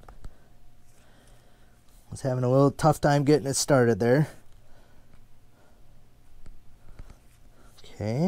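A knife slices and scrapes softly through flesh and fur.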